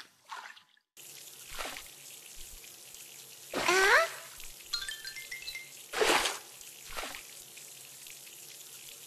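A shower sprays water in a steady hiss.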